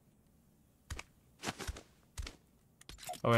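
A pickaxe strikes a hollow object with a few sharp knocks.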